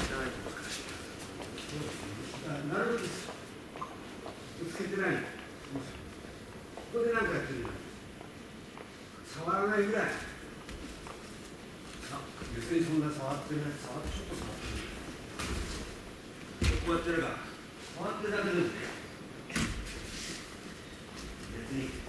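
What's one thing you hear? A man explains calmly in an echoing hall.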